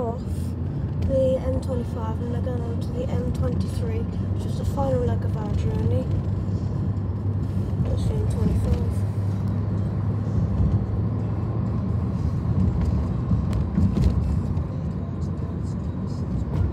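A car engine hums and tyres roar steadily on the road from inside a moving car.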